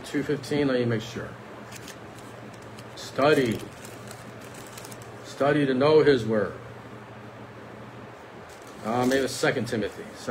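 A middle-aged man speaks calmly in short phrases close to the microphone.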